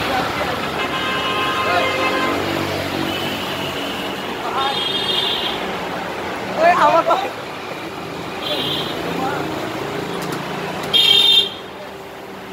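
Car horns honk now and then.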